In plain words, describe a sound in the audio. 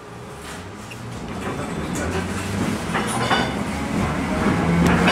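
A tram's motor hums steadily as it rolls along, growing louder.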